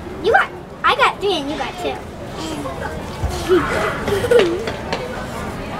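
A young boy giggles close by.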